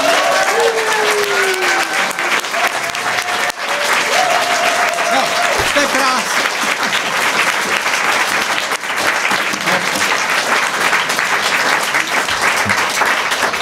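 A man claps his hands loudly and steadily.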